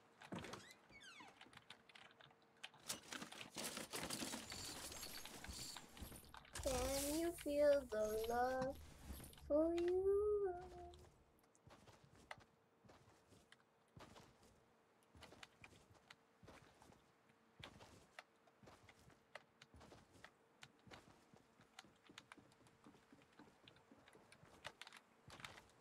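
Footsteps thud quickly on wood and grass.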